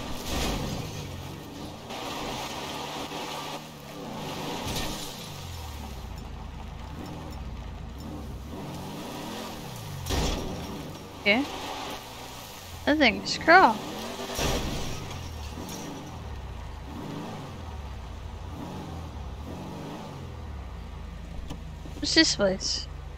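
A car engine hums and revs as the car drives over rough ground.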